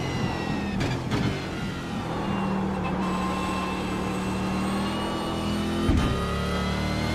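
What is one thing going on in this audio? A racing car engine roars at high revs, its pitch rising and dropping with each gear change.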